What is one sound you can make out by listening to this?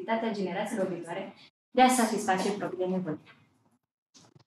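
A young woman speaks calmly to an audience.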